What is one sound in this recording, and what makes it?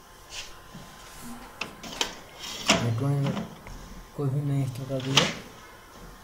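Plastic parts click and knock as a cartridge is slid into a machine.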